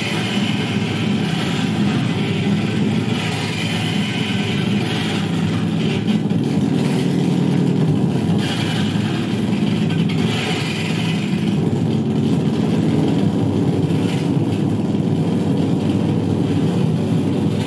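Loud electronic music with a deep, steady pulse plays through speakers.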